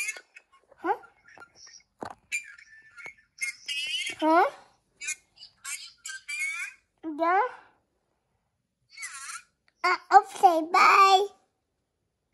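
A toddler speaks in short babbling phrases close by.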